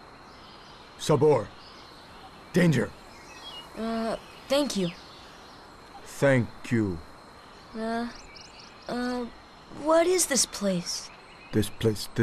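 A young boy speaks hesitantly.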